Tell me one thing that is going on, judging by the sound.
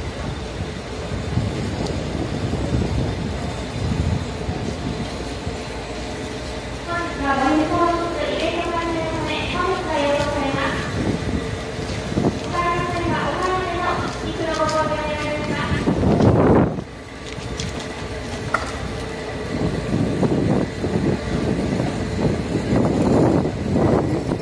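A train rumbles slowly along the tracks.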